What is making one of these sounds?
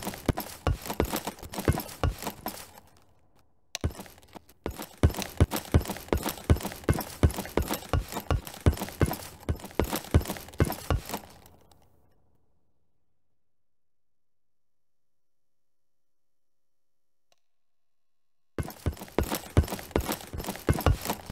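Footsteps run quickly and evenly on a hard floor.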